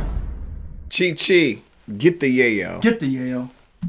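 A second man talks with animation close to a microphone.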